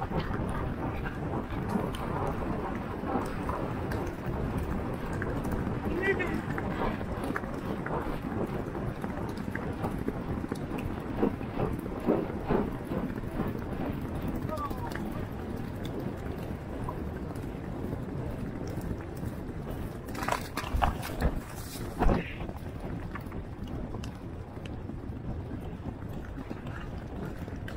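Hooves pound rapidly on soft turf.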